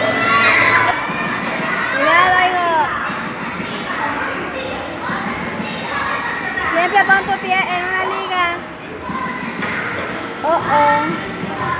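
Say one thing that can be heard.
A crowd of children chatters in the background.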